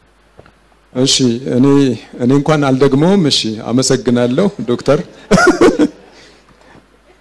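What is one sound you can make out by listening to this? A man laughs into a microphone.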